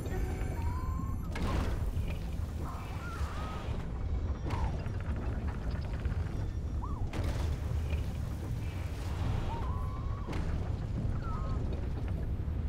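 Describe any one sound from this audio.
Short, bright chirping calls ring out now and then.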